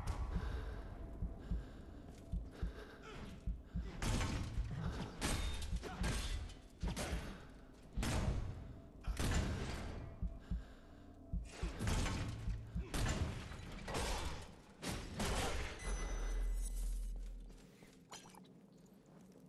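Heavy armoured footsteps clank on stone.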